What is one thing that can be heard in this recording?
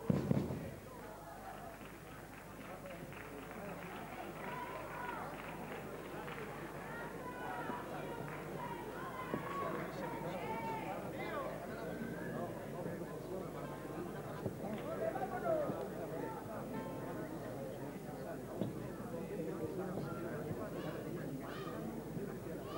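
A group of men and women sing together on a stage, heard from a distance in a large hall.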